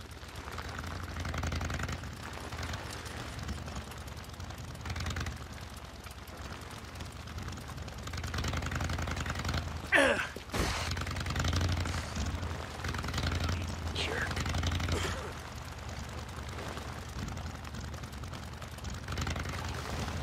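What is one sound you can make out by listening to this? A motorcycle engine rumbles and revs as it rides along.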